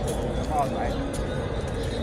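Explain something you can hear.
An elderly man talks on a phone close by.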